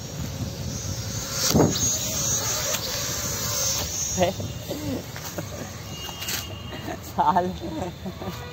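A small drone's propellers whine up close.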